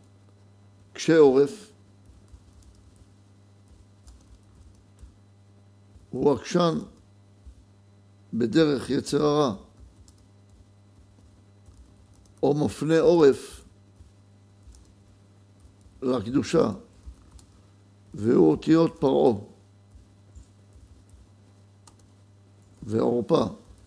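A middle-aged man reads aloud calmly into a close microphone, in short phrases with long pauses.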